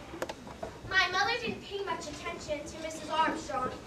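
A young girl speaks clearly.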